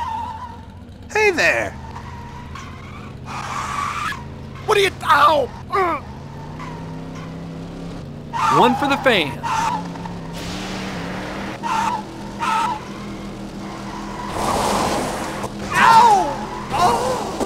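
A racing car engine revs up and roars as the car speeds up.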